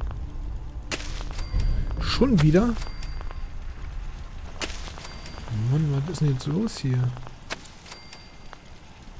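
Short electronic beeps and chimes sound now and then.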